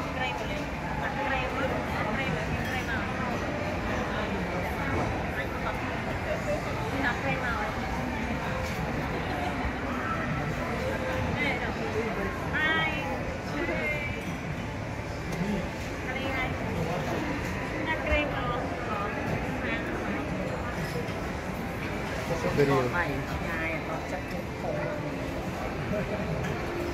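Several young women and men chat and laugh together close by.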